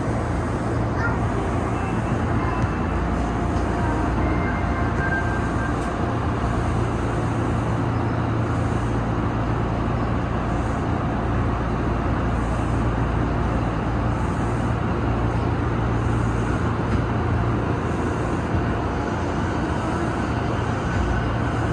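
A train rumbles and hums steadily from inside its cab.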